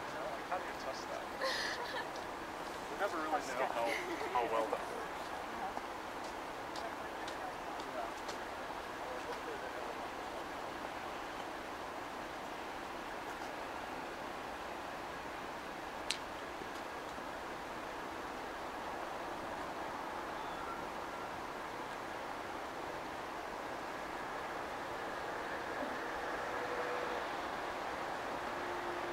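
A city hums steadily in the distance.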